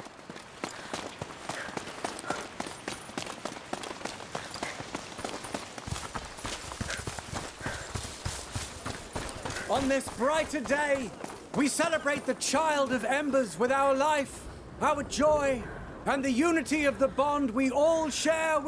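Footsteps crunch on dirt as several people walk.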